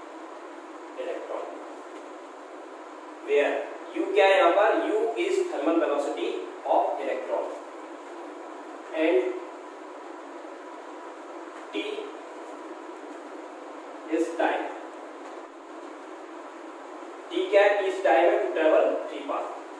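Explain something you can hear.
A young man explains with pauses, close by.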